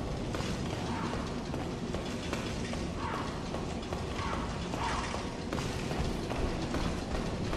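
Heavy armoured footsteps thud and clink up stone steps.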